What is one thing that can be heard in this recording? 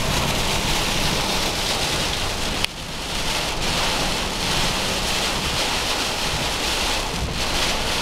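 Tyres rumble steadily on the road, heard from inside a moving car.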